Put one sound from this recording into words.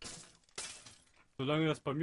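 A sword strikes a skeleton.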